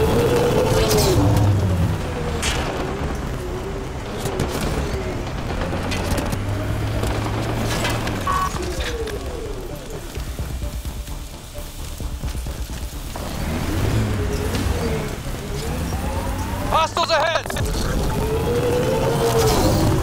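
A vehicle engine roars and revs while driving over rough ground.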